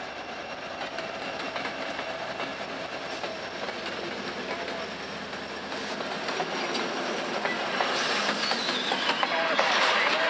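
Diesel freight locomotives rumble past.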